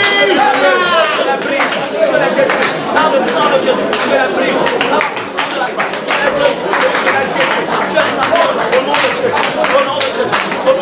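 Hands clap in a quick rhythm.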